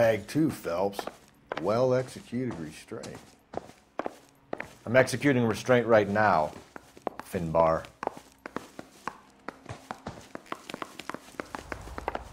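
Footsteps tap steadily on a hard floor and stairs.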